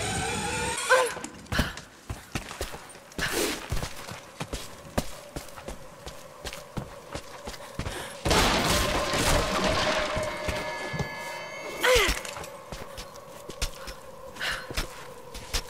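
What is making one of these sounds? Footsteps thud on stone and wood.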